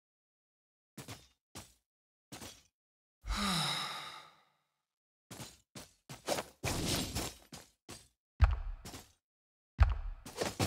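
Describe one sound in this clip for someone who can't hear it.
Blades swish and strike in short, sharp bursts.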